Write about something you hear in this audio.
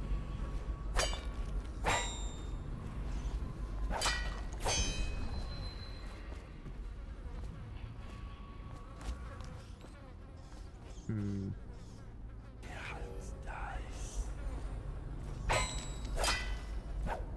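A sword swishes and strikes with a sharp metallic ring.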